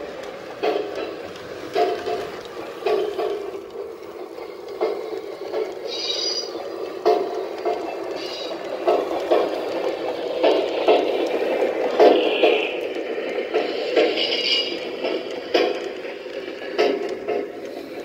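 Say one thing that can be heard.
Model train wheels click rhythmically over rail joints.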